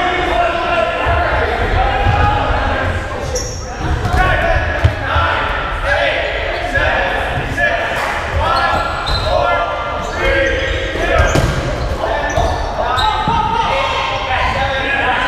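Rubber balls bounce and thud.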